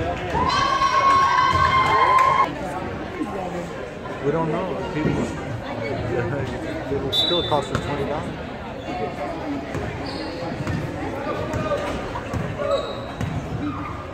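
A crowd of people chatters in an echoing gym.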